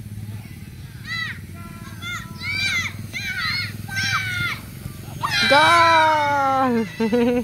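Children shout and cheer outdoors.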